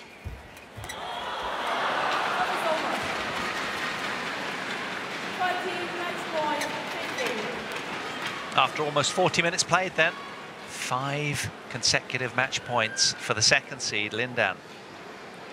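A crowd cheers and applauds in a large arena.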